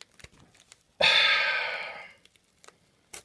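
Tape rips from a wrapped pack.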